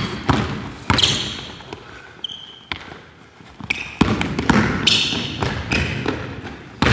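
Sneakers squeak sharply on the hardwood floor.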